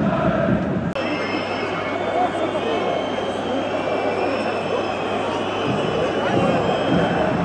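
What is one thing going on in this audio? A large stadium crowd roars and whistles.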